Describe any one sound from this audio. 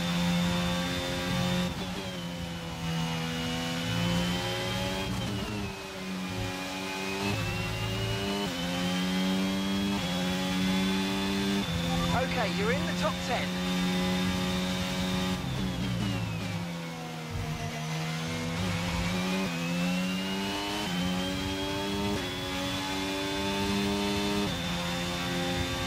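A racing car engine screams at high revs, dropping in pitch as the gears shift down for corners and rising again as the gears shift up.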